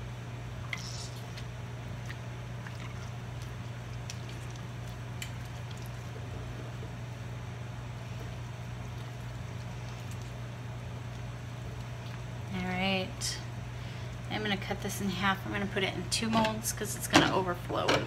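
Liquid drips and trickles into a pot.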